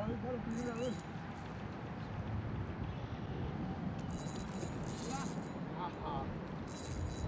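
A man speaks outdoors.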